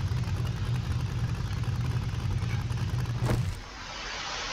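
A truck engine idles with a low, steady rumble.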